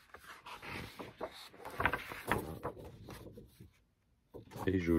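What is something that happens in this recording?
Paper pages rustle and flap as a large booklet is turned.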